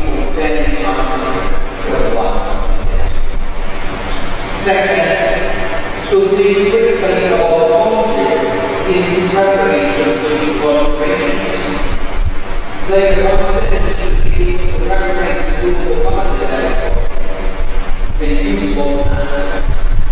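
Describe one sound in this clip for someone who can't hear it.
A middle-aged man chants slowly in a singing voice through a microphone.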